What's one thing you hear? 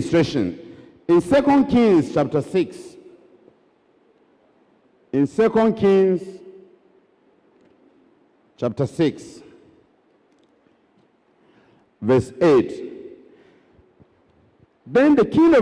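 A man preaches with animation into a microphone in a large echoing hall, speaking in short bursts with pauses.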